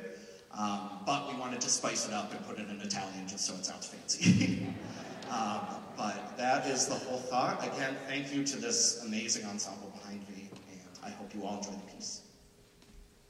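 A young man speaks with animation into a microphone in a large hall.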